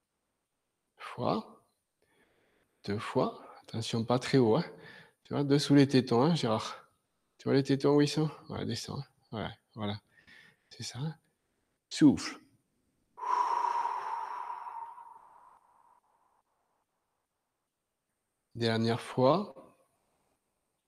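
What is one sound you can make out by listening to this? A middle-aged man speaks calmly and clearly, giving instructions with pauses.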